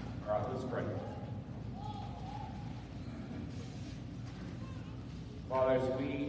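A man speaks through a microphone in a large echoing room.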